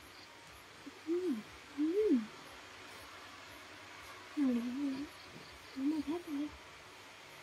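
A young woman hums briefly, close by.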